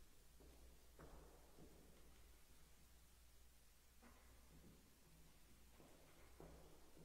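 Footsteps echo in a large, reverberant hall.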